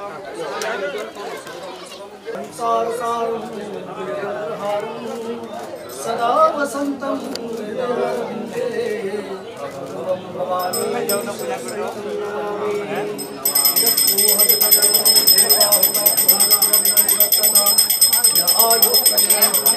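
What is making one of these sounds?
Several men murmur and talk nearby.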